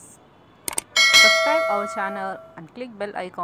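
A bell chimes brightly.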